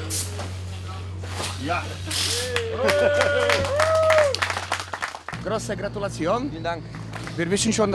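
A small group of men clap and cheer.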